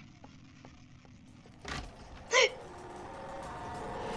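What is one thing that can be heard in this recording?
A wooden closet door bumps shut.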